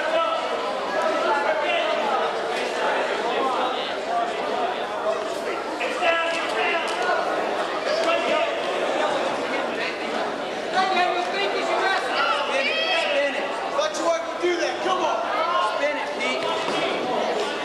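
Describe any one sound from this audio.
Wrestlers' shoes squeak on a mat.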